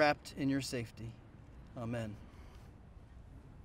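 A man speaks firmly into a microphone outdoors, heard through a loudspeaker.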